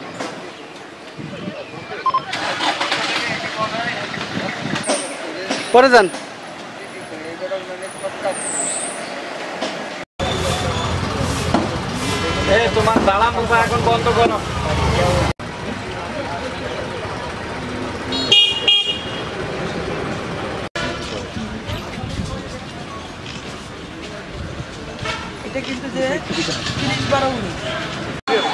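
A crowd of men chatter outdoors.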